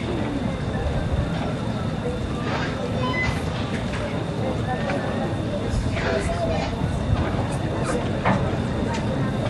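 People talk quietly nearby.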